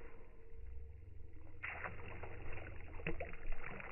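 A man splashes water with his hands.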